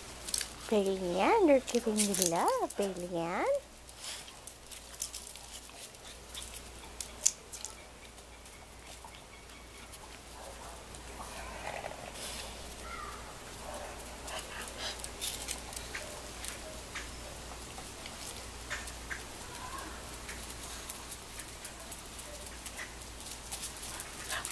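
Small paws patter and scratch on concrete.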